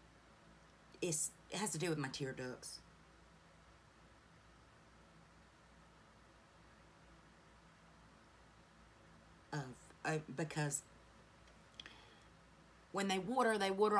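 A woman speaks close to the microphone in short, animated bursts.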